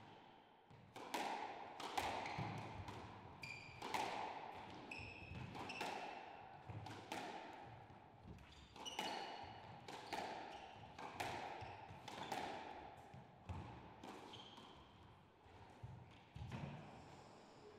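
A squash ball smacks hard against the walls and rackets, echoing around a hard-walled court.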